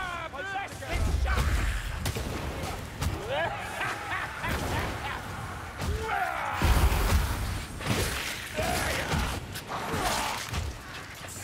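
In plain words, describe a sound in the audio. Heavy blows thud and clang against attackers.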